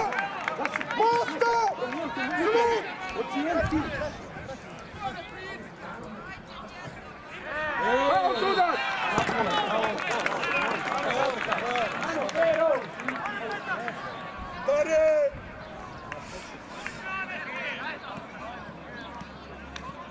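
A crowd of spectators shouts and cheers outdoors, loudest in the middle.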